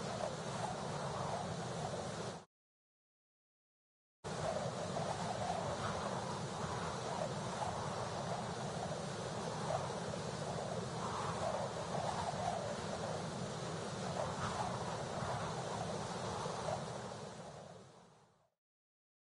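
Wind rushes steadily past in flight.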